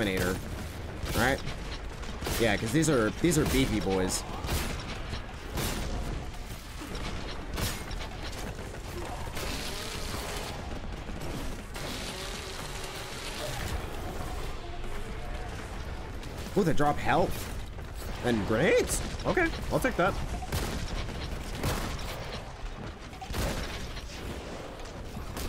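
Gunfire and explosions from a game boom and crackle throughout.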